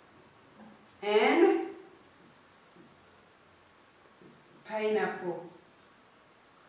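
A woman speaks clearly and slowly, close by.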